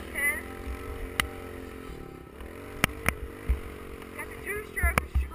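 A motocross dirt bike engine roars while riding at speed.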